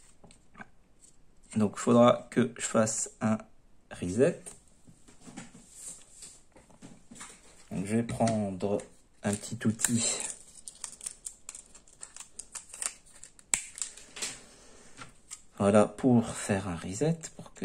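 Hard plastic parts click and scrape as they are handled.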